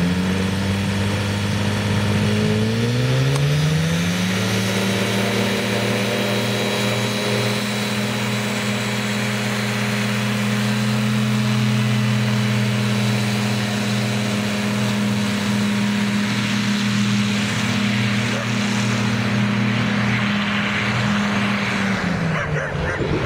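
A paramotor engine drones loudly, revving up and then holding a steady pitch.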